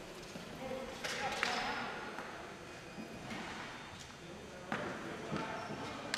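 Hockey sticks clack and scrape on a hard floor in a large echoing gym.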